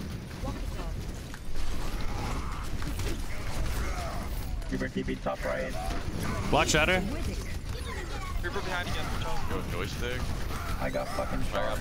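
Video game gunfire and blasts rattle rapidly.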